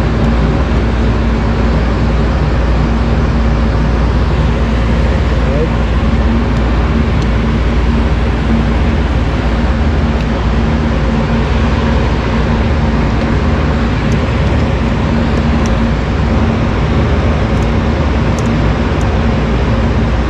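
A screwdriver clicks and scrapes against metal terminals.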